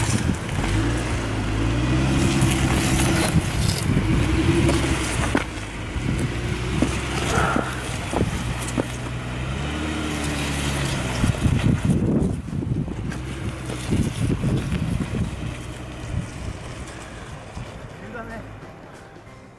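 Tyres crunch and scrape over rock.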